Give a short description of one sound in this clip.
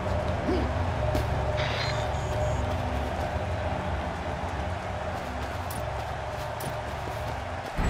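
Footsteps run quickly across turf.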